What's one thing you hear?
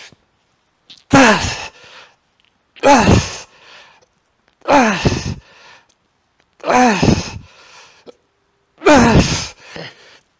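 A man grunts loudly with effort, again and again.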